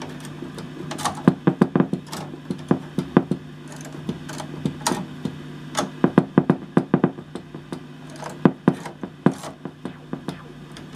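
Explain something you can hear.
Organ notes play in short plucked, percussive bursts.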